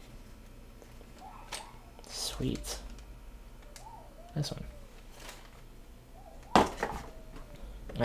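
Plastic packets crinkle as they are handled.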